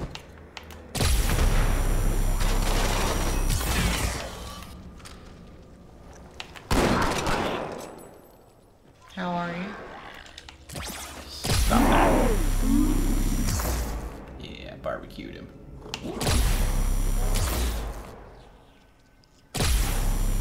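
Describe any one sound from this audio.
A rapid-fire energy weapon shoots in loud, crackling bursts.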